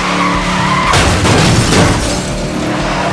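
Debris clatters and smashes against a speeding car.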